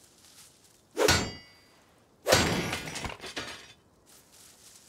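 A knife strikes a metal barrel with loud clanging hits.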